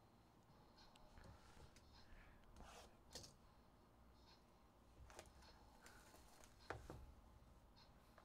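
Cardboard rustles as a box is handled.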